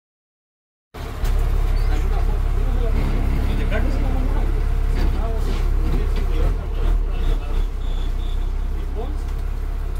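A bus engine rumbles steadily up close.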